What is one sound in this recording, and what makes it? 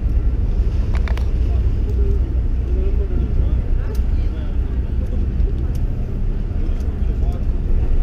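Men and women chatter nearby.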